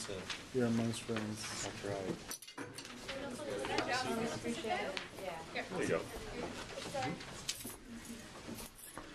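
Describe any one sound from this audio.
Several young men and women chatter nearby.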